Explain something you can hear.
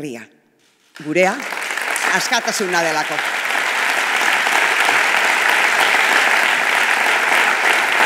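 A crowd claps loudly.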